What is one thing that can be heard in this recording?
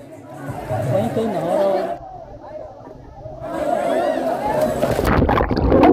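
Water splashes around children swimming in a pool.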